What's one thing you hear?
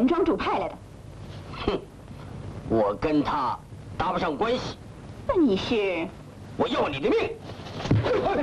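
A man answers mockingly.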